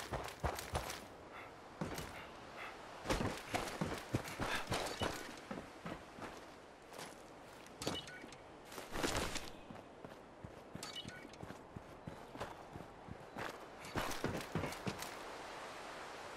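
Footsteps crunch over gravel and loose debris.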